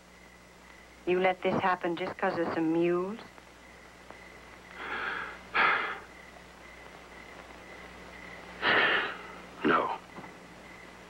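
A man coughs and sputters close by.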